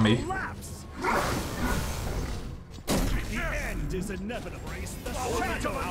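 Loud magical blasts whoosh and crackle.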